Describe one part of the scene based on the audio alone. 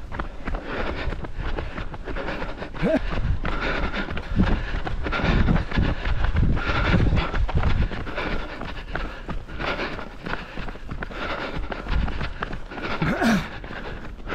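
Running footsteps patter steadily on a paved road.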